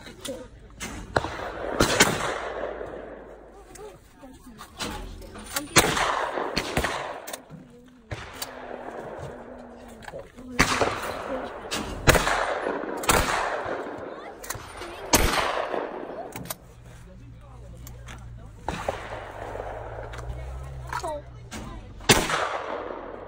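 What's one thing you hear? Shotgun blasts boom one at a time and echo across open ground.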